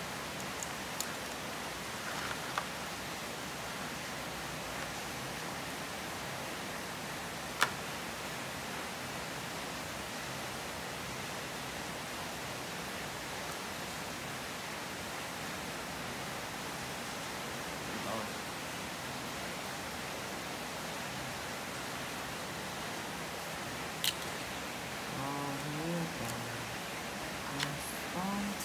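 Crab shells click and tap against a plastic basin.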